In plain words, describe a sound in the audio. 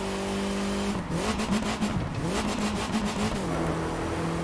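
A game car engine's pitch drops and wobbles as the gears shift.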